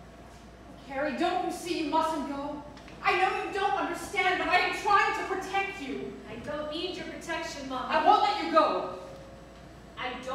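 A second woman answers with animation.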